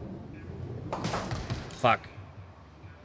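Bowling pins crash and clatter as the ball strikes them.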